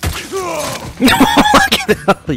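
Heavy blows thud in a close struggle.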